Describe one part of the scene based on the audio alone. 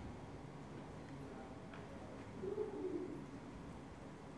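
A man speaks quietly into a microphone in an echoing room.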